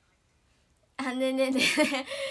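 A young woman laughs brightly, close to a microphone.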